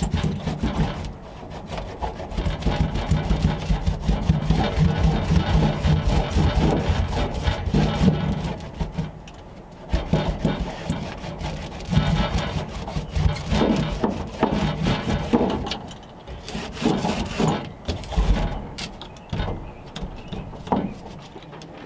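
Tools scrape and knock on a metal car floor.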